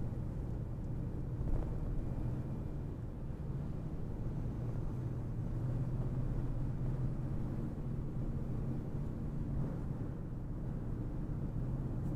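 Tyres roar on the road at highway speed.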